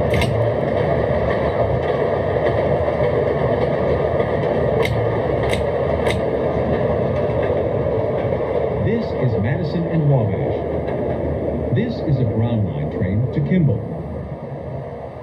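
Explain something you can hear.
A train rumbles steadily along the tracks and slows to a stop.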